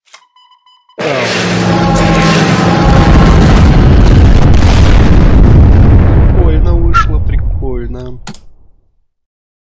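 An explosion booms and rumbles, then fades away.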